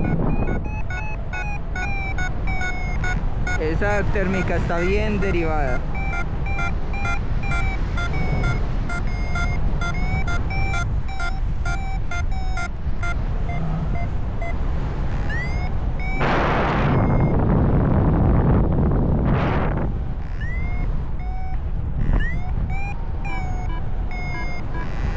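Wind rushes steadily and loudly past outdoors.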